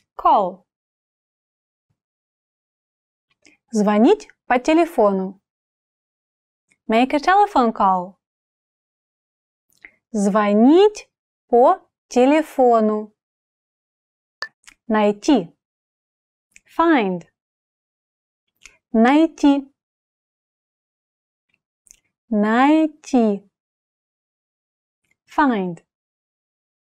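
A young woman speaks calmly and clearly into a close microphone, pausing between words.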